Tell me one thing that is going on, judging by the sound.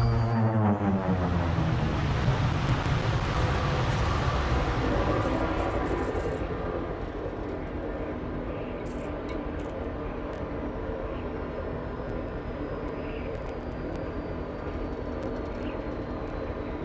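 A spaceship engine rumbles steadily, louder at first and then settling lower.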